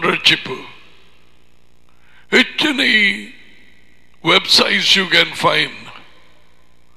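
A middle-aged man speaks with animation into a close headset microphone, in short bursts with pauses.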